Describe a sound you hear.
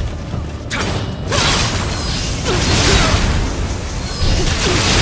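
Swords slash and clang in a fight.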